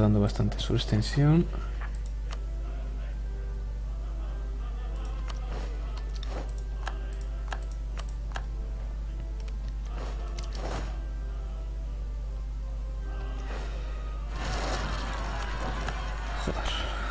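Soft orchestral game music plays steadily.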